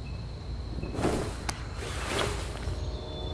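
Clothing rustles and shuffles.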